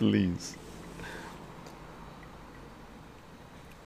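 An elderly man sips a drink.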